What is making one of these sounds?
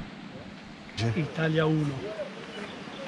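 A man speaks calmly, close to the microphone.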